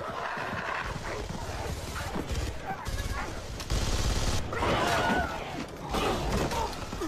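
Gunfire crackles in bursts.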